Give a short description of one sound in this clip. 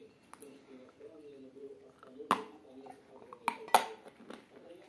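A young woman bites into soft food close to a microphone.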